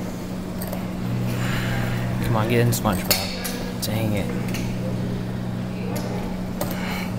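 A claw machine's motor whirs as the claw moves.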